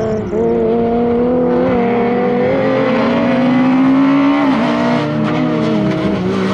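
A car engine revs hard and climbs in pitch as the car speeds closer, then drops as the gear changes.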